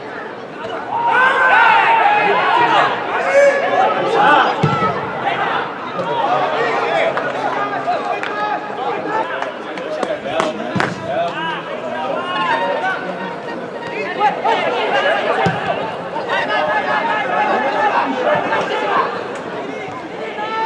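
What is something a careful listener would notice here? Players shout to each other across an open field.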